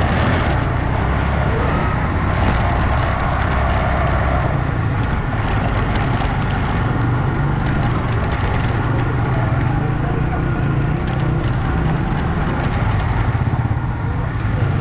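A motorcycle engine putters past close by.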